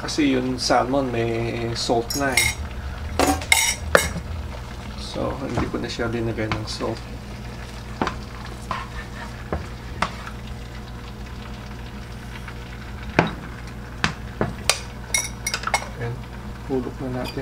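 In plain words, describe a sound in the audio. A spatula scrapes and taps against a frying pan.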